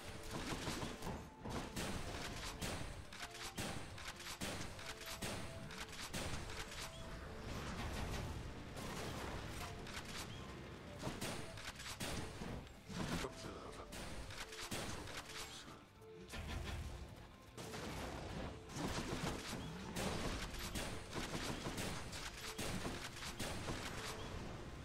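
Sword slashes and magic blasts crash in quick bursts.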